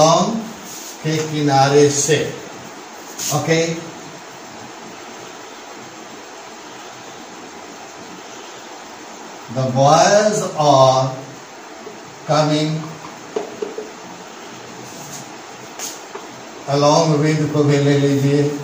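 An elderly man speaks slowly and calmly, close by, in short phrases with pauses.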